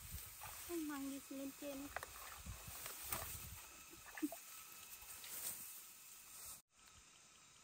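Rice stalks rustle and swish as a woman wades through them.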